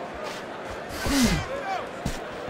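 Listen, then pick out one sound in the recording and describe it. A punch lands with a heavy thud.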